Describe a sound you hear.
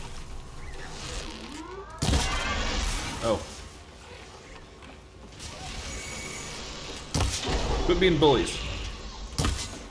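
A bowstring is drawn and an arrow is loosed with a twang.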